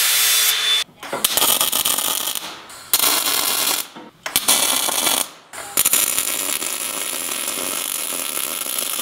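An arc welder crackles and sizzles in bursts.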